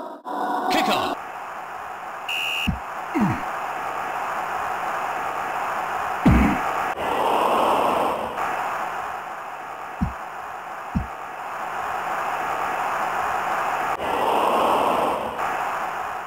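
A crowd roars steadily, swelling into cheers now and then.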